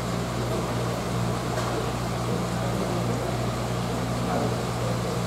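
Water bubbles and gurgles steadily close by.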